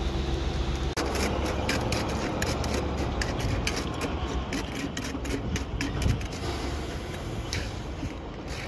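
A scoop scrapes and pats wet concrete.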